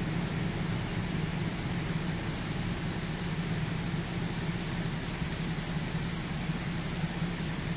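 A tractor engine idles close by.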